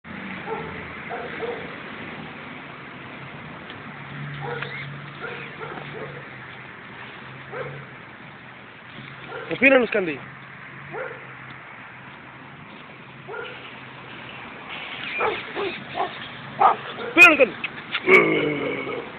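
Dogs yelp and bark.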